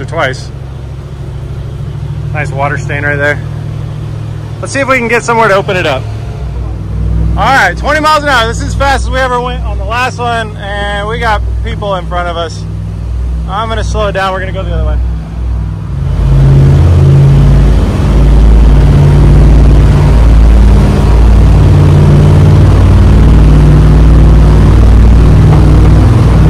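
A boat engine hums steadily, then roars louder as it speeds up.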